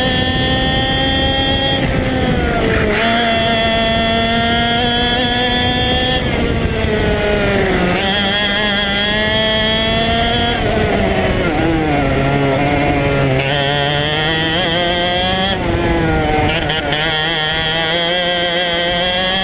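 A small kart engine whines loudly close by, its pitch rising and falling as it speeds up and slows down.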